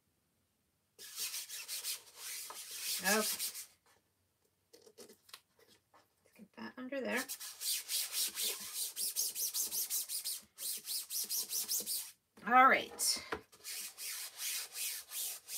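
A hand rubs briskly over a surface, making a rhythmic scratchy swishing.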